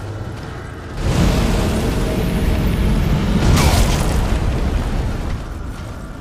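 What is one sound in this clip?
A magical blast roars loudly and then fades.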